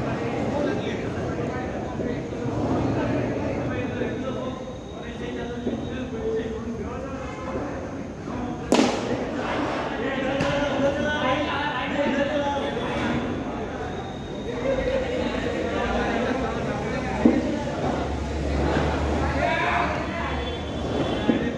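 Men talk and call out to each other outdoors.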